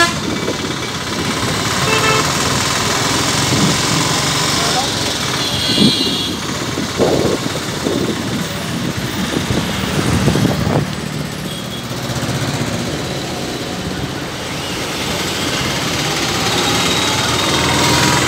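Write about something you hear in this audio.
A vehicle engine drones while driving along a road.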